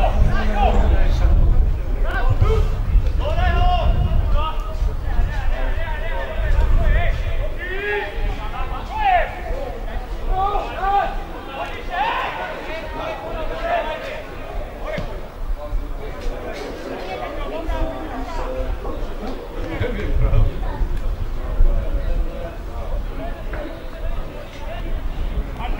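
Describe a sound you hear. Young men shout to each other outdoors across an open field.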